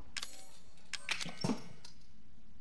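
A metal lantern clunks into a wooden box.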